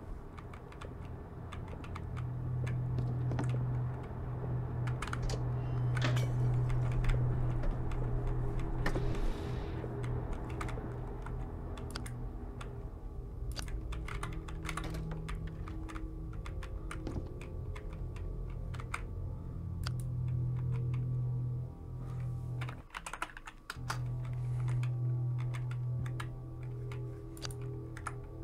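A flashlight clicks on and off several times.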